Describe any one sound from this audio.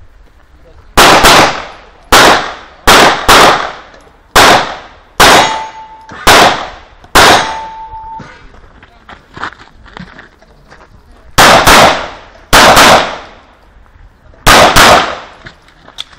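A pistol fires loud shots in quick bursts outdoors.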